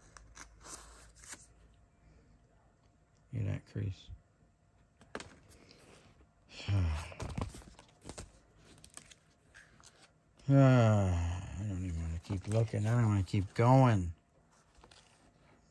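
Plastic card sleeves rustle and crinkle as cards are handled.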